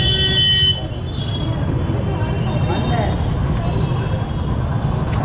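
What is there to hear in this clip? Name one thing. Motorbike engines rumble close by on a busy street.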